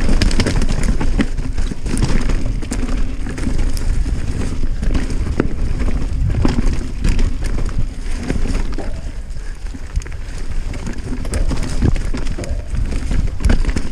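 A mountain bike rattles and clatters over bumps.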